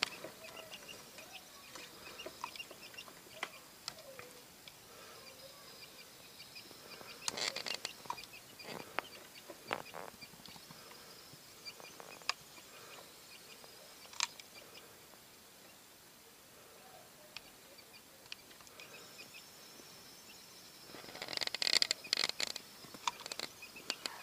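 Small chicks shuffle and scratch against a plastic tray.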